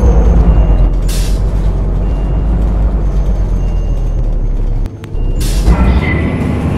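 Bus doors open and close with a hiss of air.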